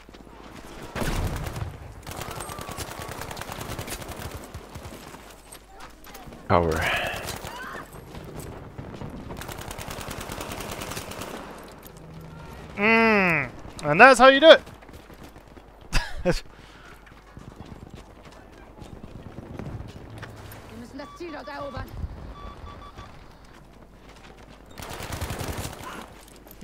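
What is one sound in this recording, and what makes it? A submachine gun fires rapid bursts close by.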